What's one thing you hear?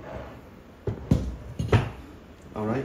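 A metal machine frame bumps and knocks against a table as it is tipped over.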